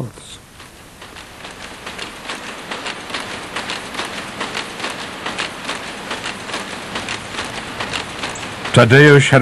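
Weaving looms clatter in a fast, steady rhythm.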